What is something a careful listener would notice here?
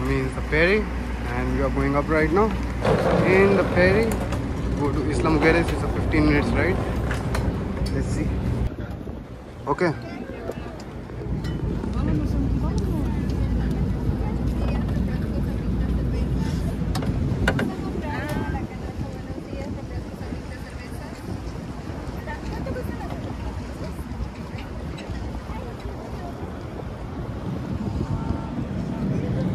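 People chatter nearby on a boat.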